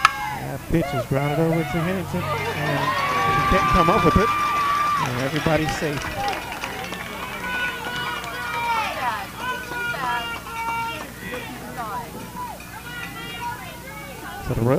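Young women shout and cheer outdoors across a ball field.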